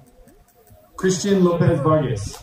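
A man speaks over a loudspeaker outdoors.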